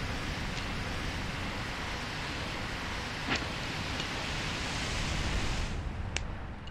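Rushing water roars loudly.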